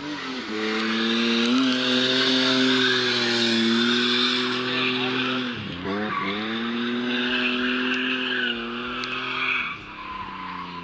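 Car tyres screech on asphalt.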